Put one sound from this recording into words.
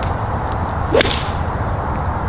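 A golf club swishes through the air and strikes a ball with a sharp click.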